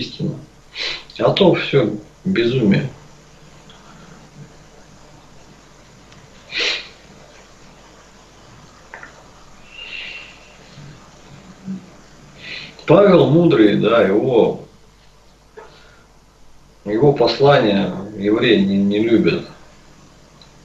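An elderly man speaks calmly into a microphone, heard through an online call.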